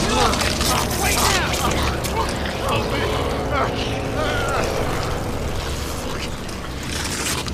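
A creature growls and snarls.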